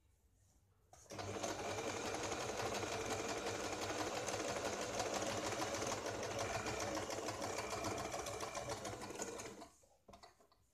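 A sewing machine runs with a fast, steady whir.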